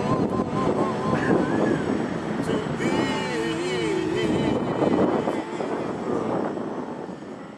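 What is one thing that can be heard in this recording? A man sings along nearby.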